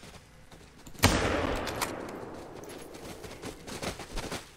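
A rifle fires a single loud shot that echoes and slowly fades.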